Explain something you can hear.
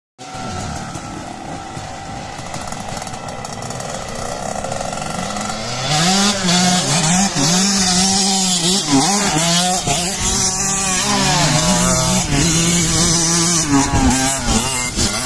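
A dirt bike engine buzzes in the distance, then revs up and down loudly up close.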